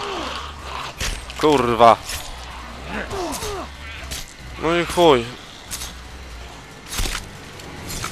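A blade stabs into flesh with wet thuds.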